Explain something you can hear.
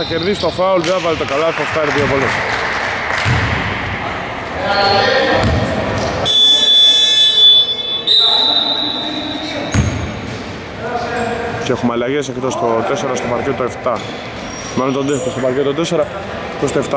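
Men shout and call out across a large echoing hall.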